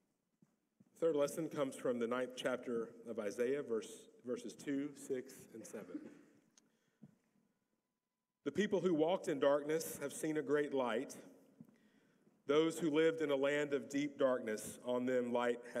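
A man speaks calmly into a microphone in a large echoing hall.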